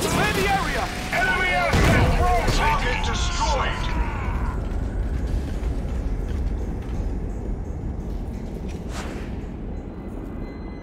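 Gunfire and explosions rumble in a game battle.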